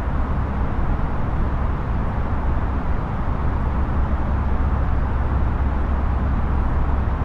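A steady low rumble of jet engines and rushing air drones on.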